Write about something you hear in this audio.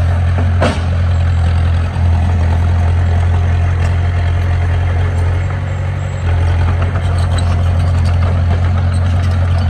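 A diesel engine rumbles steadily close by.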